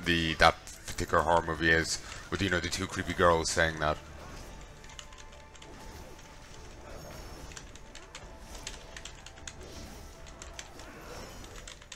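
Magic spells crackle and whoosh in a fight.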